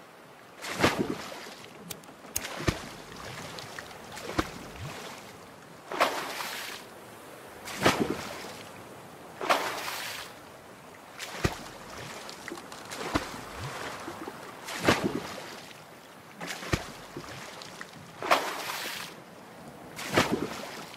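A paddle splashes through water in steady, regular strokes.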